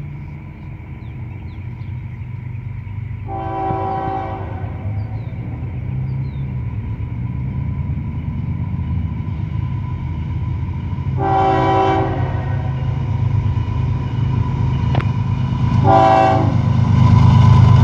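A diesel locomotive rumbles as it approaches, growing louder.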